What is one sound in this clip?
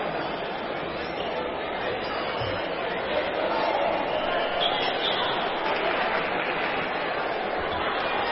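Basketball shoes squeak on a wooden court.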